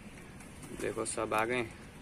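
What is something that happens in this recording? A pigeon flaps its wings.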